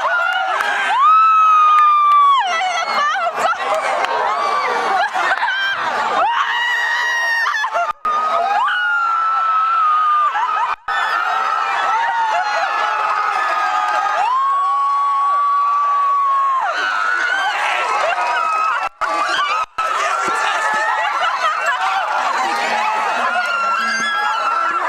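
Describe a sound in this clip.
A large outdoor crowd of young graduates cheers and screams.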